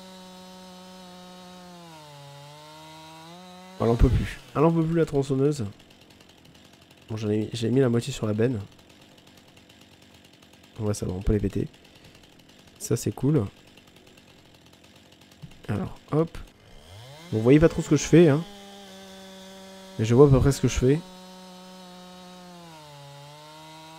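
A chainsaw engine drones steadily, dipping in pitch now and then.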